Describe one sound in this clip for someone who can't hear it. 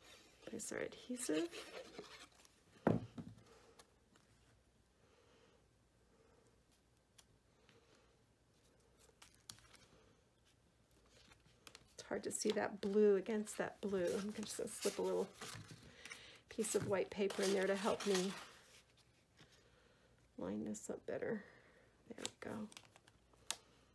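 Paper rustles and scrapes as it is handled and pressed down.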